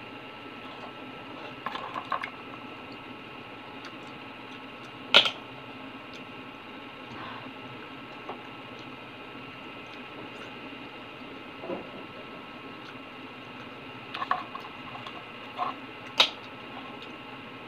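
Fingers pull at wet oyster shells with soft squelching sounds.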